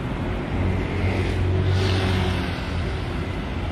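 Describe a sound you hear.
A motorbike engine rumbles past close by.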